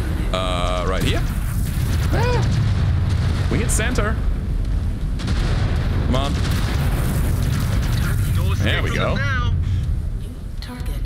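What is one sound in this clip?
Heavy weapons fire booms and rumbles steadily.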